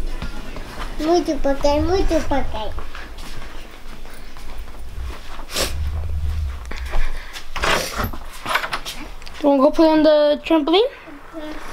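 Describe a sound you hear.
A teenage boy talks close by, with animation.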